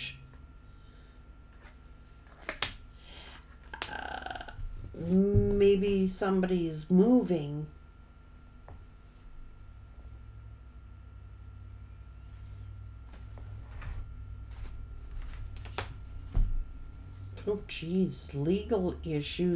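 Cards shuffle and tap together in a woman's hands.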